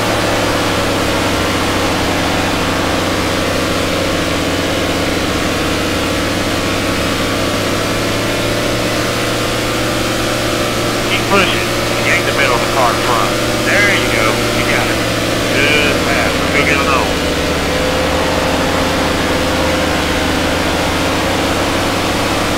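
Race car engines roar steadily at high speed.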